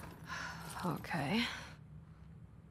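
A young woman says a short word quietly.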